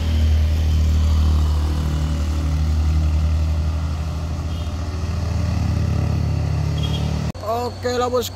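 A heavy truck engine labours and rumbles as it climbs.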